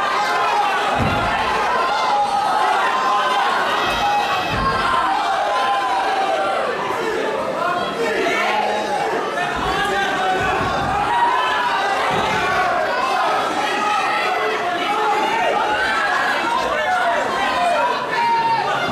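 Boxing gloves thud against bodies in dull punches.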